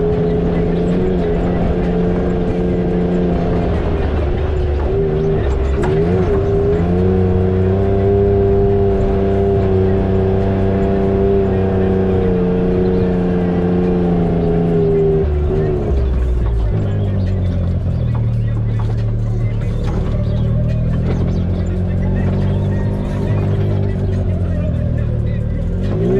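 Tyres crunch over rocks and gravel.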